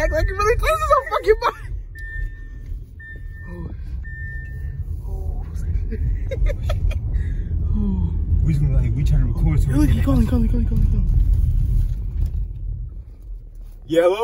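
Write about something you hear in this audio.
A car engine rumbles low while driving.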